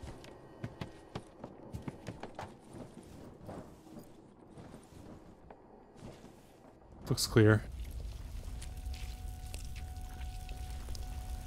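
Light footsteps patter quickly across a hard floor.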